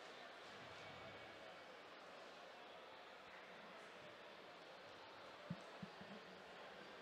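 A large crowd murmurs steadily in a big echoing hall.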